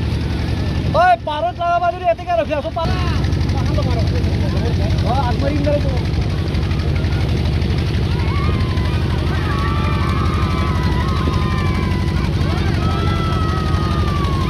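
A crowd of women chants and sings loudly outdoors.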